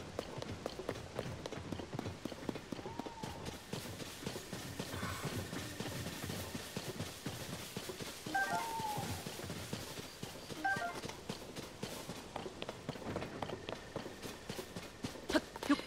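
Footsteps run quickly through rustling grass.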